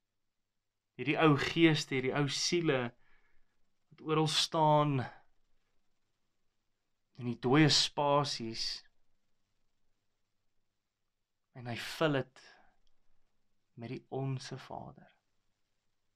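A young man speaks close to a microphone in short, animated bursts with pauses.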